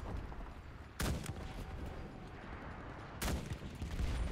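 A rifle fires a sharp, loud shot.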